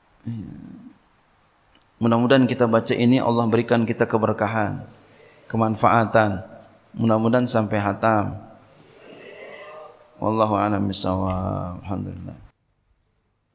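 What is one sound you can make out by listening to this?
A man speaks with animation through a microphone in a large echoing room.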